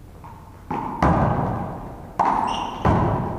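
A ball thuds loudly against a wall and the floor.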